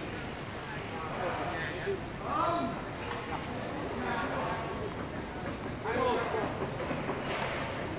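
A man talks outdoors, calling across a tennis court.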